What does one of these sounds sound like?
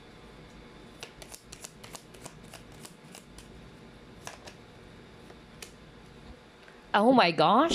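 A card is slid and tapped onto a wooden table.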